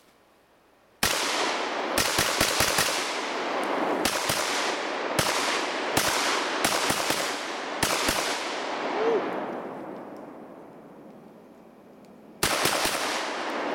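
A rifle fires loud shots in quick bursts that echo outdoors.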